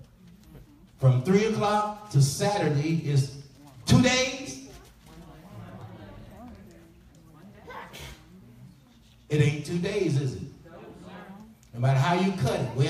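A man preaches with animation through a microphone and loudspeakers in an echoing hall.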